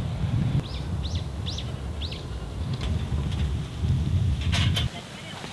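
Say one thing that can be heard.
Strong wind blows in gusts outdoors.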